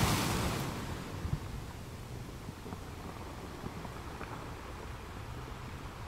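Waves crash and surge over rocks.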